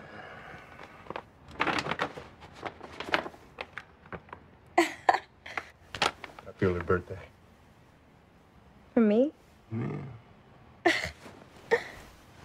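A young woman speaks softly and playfully up close.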